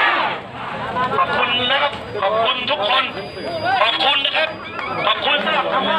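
Young men talk and call out nearby.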